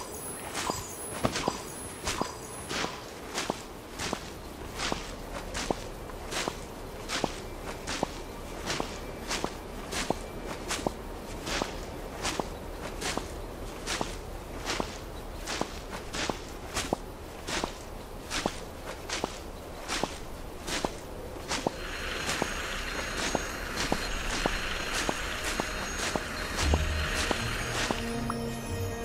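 Footsteps thud steadily on soft ground.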